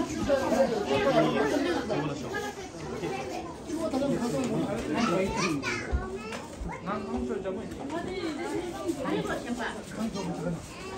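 Serving spoons clink against metal trays.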